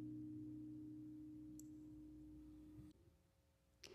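An acoustic guitar chord rings and slowly fades.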